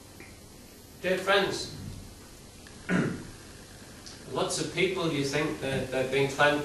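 A middle-aged man speaks calmly into a microphone in an echoing hall.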